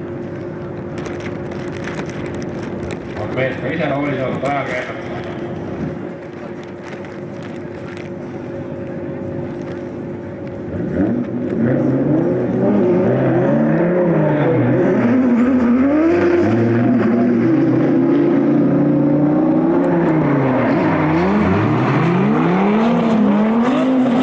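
Racing car engines roar and rev hard.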